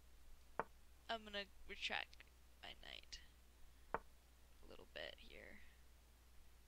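A woman talks calmly into a microphone.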